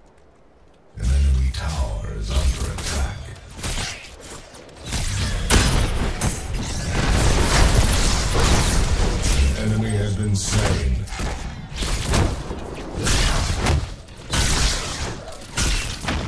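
Magic blasts and weapon strikes crash and crackle in a fast fight.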